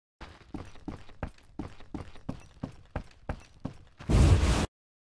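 Footsteps thud on wooden floorboards at a steady walking pace.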